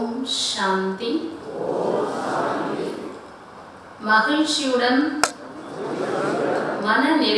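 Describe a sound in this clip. A woman speaks with animation into a microphone, amplified through loudspeakers in a large room.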